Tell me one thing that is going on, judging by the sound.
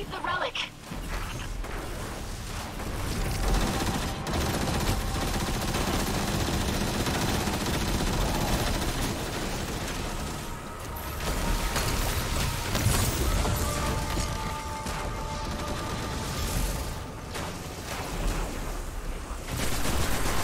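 Rapid gunfire and blasts ring out in a video game battle.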